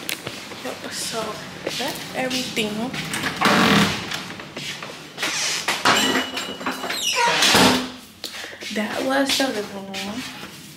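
A young woman talks casually, close to the microphone.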